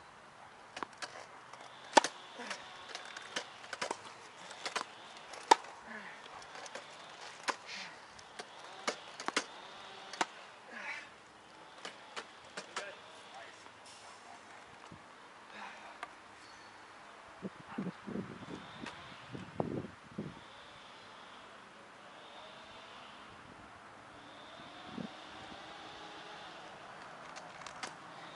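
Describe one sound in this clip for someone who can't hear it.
Wheelchair wheels roll and creak on a hard court.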